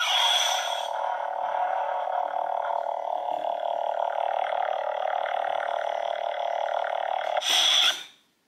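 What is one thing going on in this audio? A toy lightsaber hums steadily with a buzzing drone.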